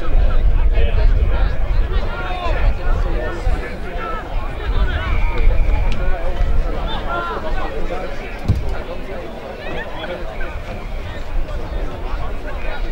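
Players shout to one another across an open field.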